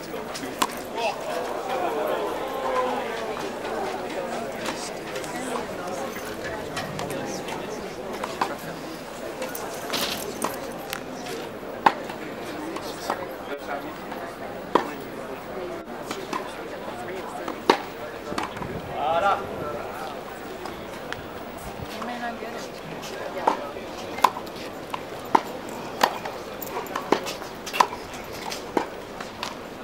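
A tennis racket strikes a ball with sharp pops, again and again, outdoors.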